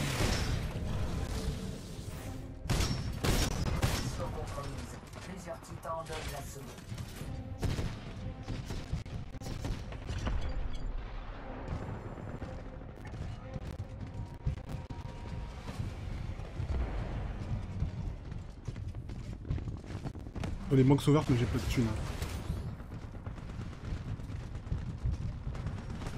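Guns fire in rapid bursts in a video game.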